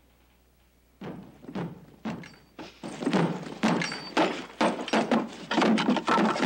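Metal tools clank and bang against a wooden wagon bed.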